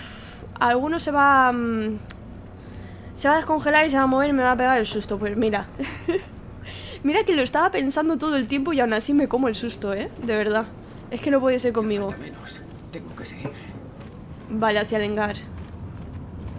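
A young woman talks with animation through a close microphone.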